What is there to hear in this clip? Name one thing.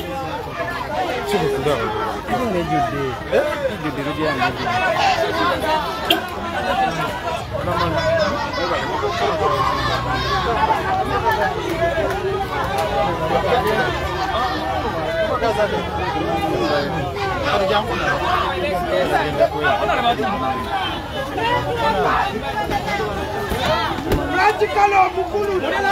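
A large crowd of men and women talks and shouts excitedly close by, outdoors.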